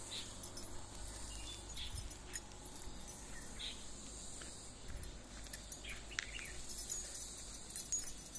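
Footsteps scuff along a concrete path outdoors.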